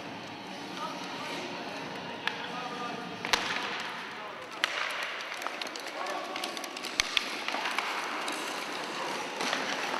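Hockey sticks clack against a puck on the ice.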